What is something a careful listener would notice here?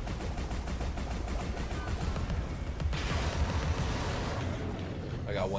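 A large monster stomps heavily.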